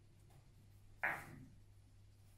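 A billiard ball is set down on a table with a soft knock.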